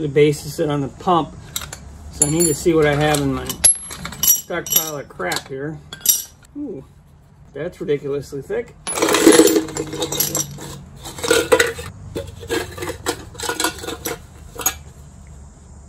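Metal pieces clink and rattle against a tin can.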